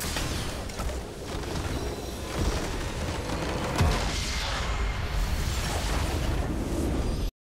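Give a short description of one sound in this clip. A huge structure explodes with a deep rumbling boom.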